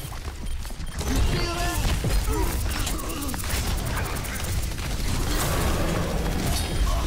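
Game weapons fire in rapid electric bursts.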